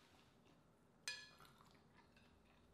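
A mussel shell clinks against a ceramic plate.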